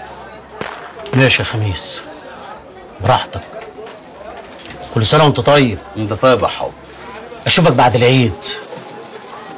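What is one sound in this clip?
An older man speaks calmly, close by.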